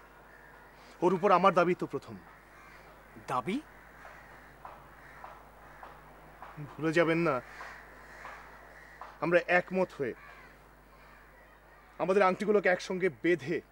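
A man speaks firmly nearby in short, emphatic bursts.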